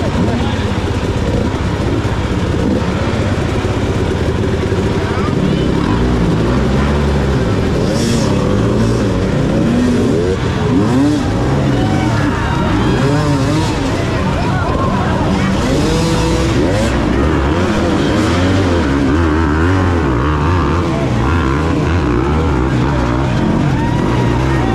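A crowd of men and women shout and cheer outdoors.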